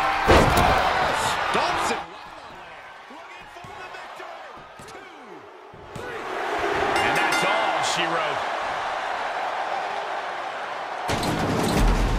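A large crowd cheers in an arena.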